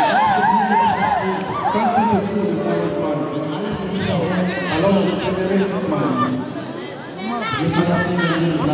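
A crowd of people chatter and call out close by.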